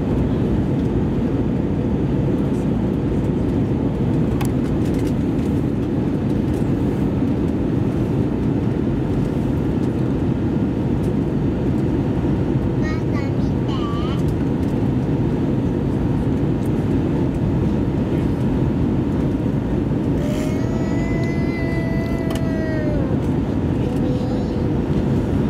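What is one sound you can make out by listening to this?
A jet engine roars steadily with a deep, even rumble.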